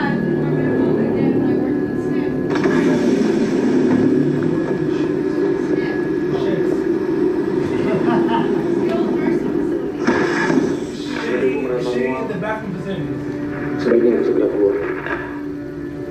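Music and voices from a television drama play through a loudspeaker.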